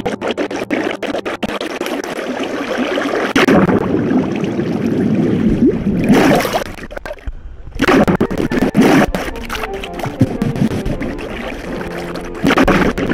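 Water flows and bubbles.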